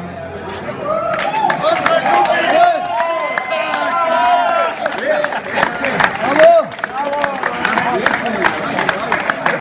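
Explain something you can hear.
An elderly man claps his hands.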